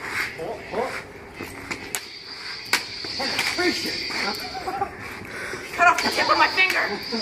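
Young men talk and laugh with animation close by.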